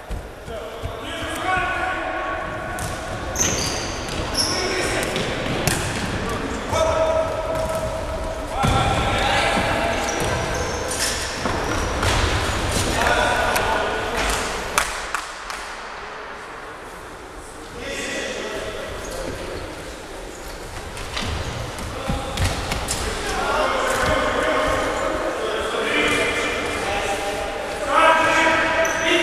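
A ball thuds as players kick it.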